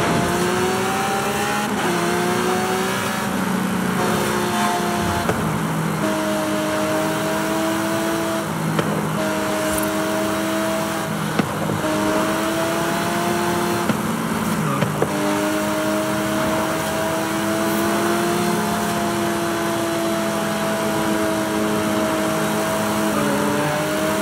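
A high-revving sports car engine roars at speed, shifting gears now and then.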